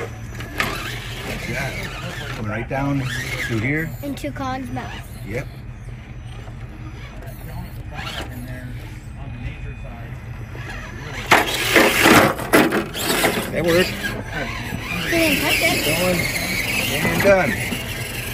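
A small electric motor whirs as a toy truck crawls over rocks.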